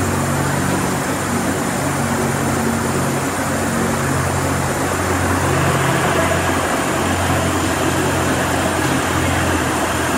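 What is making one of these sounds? An ice resurfacing machine hums as it drives slowly across the ice.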